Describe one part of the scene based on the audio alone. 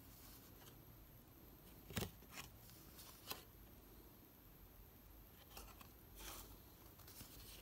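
Trading cards flick and rustle as hands shuffle through them.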